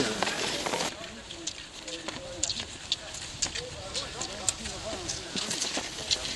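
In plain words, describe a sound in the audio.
Skis swish and scrape over packed snow.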